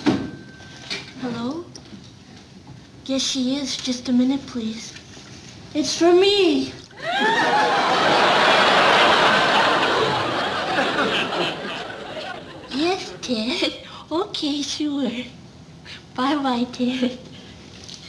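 A woman speaks into a phone with animation, close by.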